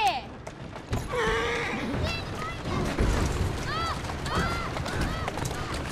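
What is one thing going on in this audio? Horse hooves clop on cobblestones.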